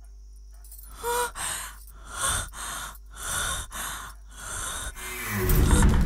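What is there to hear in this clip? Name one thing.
A young woman speaks fearfully in short, breathless bursts.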